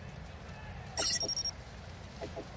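A bright electronic chime rings briefly.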